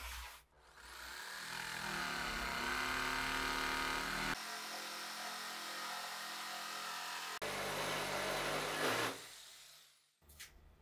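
A jigsaw cuts through a wooden board.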